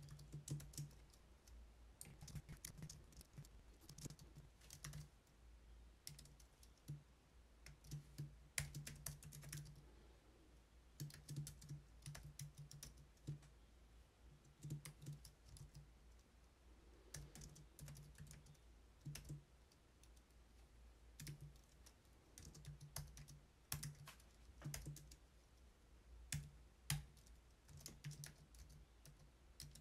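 Keys on a keyboard click quickly in bursts.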